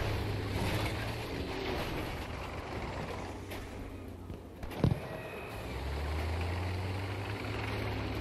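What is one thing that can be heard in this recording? Tank tracks clatter and squeak over the ground.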